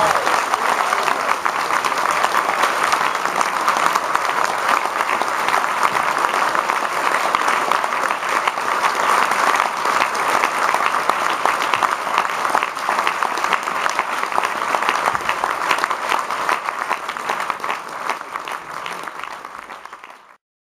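An audience claps and cheers in a large hall, then the applause fades away.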